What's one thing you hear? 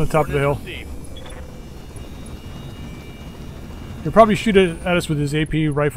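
A helicopter's rotor whirs overhead.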